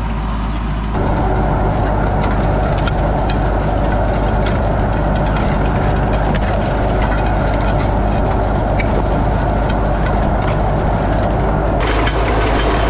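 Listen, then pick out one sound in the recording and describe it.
Soil rushes and crumbles against a moving plough blade.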